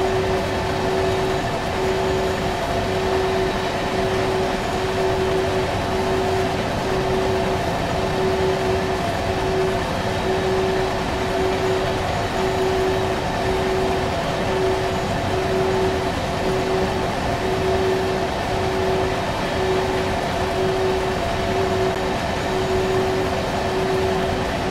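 Train wheels clatter over rail joints in an even rhythm.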